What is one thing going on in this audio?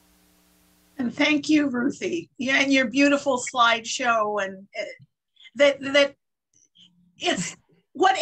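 An elderly woman speaks cheerfully over an online call.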